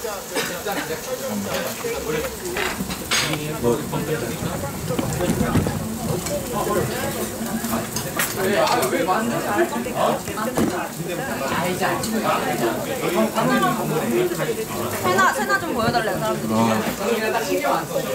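Chopsticks and cutlery clink against dishes.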